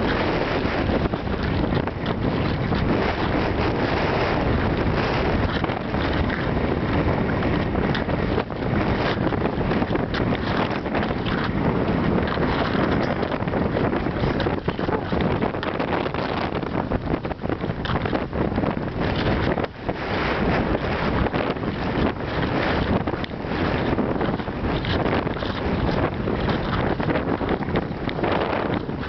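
Skis swish and scrape steadily over packed snow.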